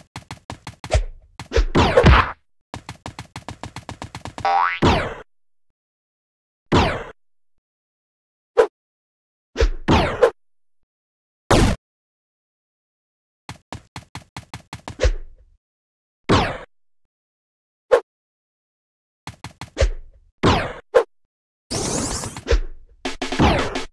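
Short whooshing jump sounds come now and then.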